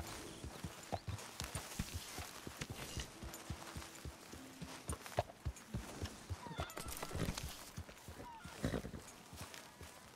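A horse's hooves thud steadily at a walk.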